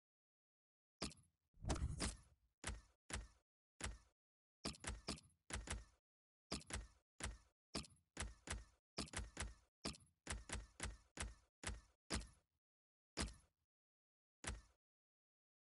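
Short electronic menu clicks tick in quick succession.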